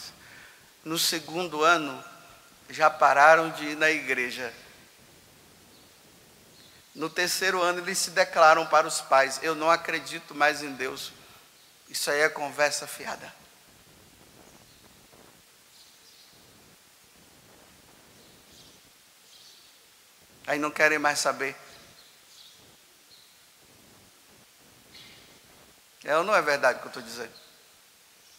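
A man speaks calmly into a microphone in bursts, with pauses, in a large echoing hall.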